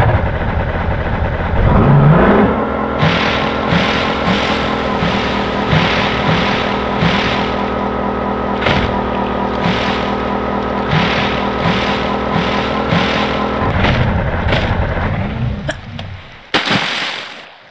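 Water splashes and churns around a moving boat.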